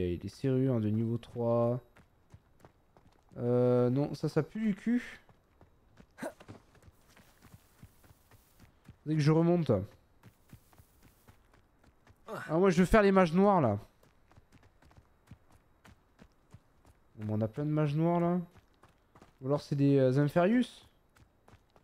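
A man speaks calmly into a close microphone, in short bursts.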